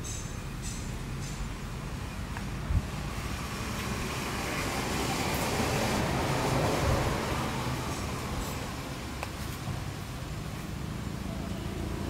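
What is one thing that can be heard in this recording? Leaves rustle softly in a breeze outdoors.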